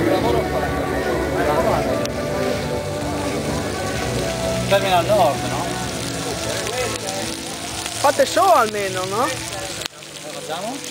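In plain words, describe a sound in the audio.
Meat sizzles on a hot griddle.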